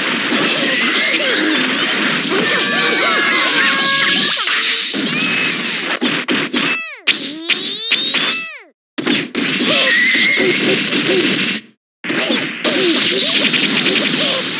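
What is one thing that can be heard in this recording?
Electric zaps crackle and buzz.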